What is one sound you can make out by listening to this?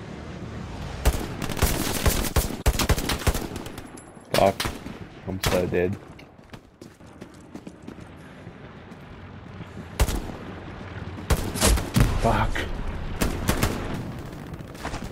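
An automatic rifle fires shots.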